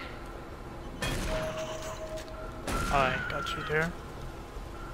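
A gun fires loudly.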